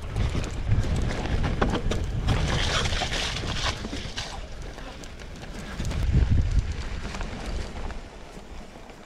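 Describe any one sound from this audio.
Bicycle tyres roll and rattle over a bumpy grassy slope.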